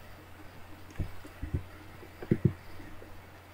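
A young man speaks briefly and quietly into a headset microphone.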